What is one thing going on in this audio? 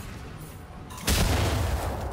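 A fiery blast booms.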